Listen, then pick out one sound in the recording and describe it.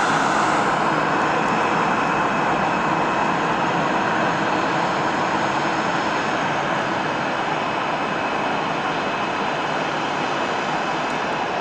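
A Boeing 737 jet airliner taxis past, its turbofan engines whining and roaring.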